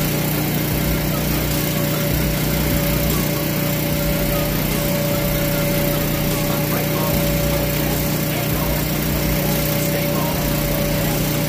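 An electric blower hums steadily nearby.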